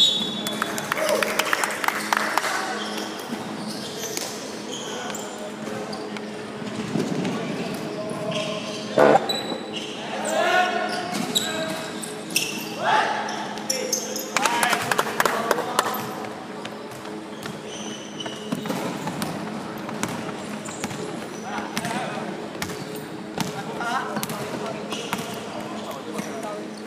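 Young men shout to each other across a large echoing hall.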